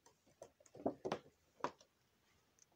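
A plastic box rattles as a hand handles it.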